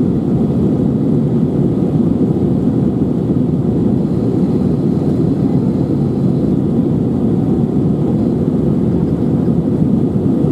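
Jet engines roar steadily inside an airliner cabin in flight.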